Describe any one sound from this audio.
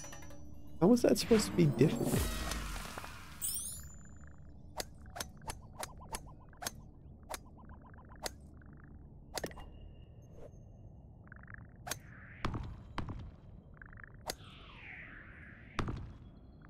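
Short electronic game clicks and blips sound again and again.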